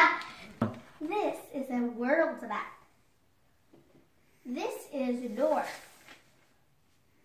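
A young girl speaks calmly, close by.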